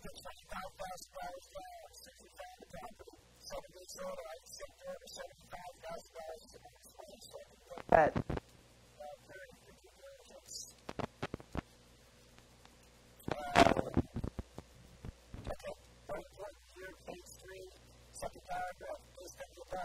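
A man reads aloud calmly through a clip-on microphone.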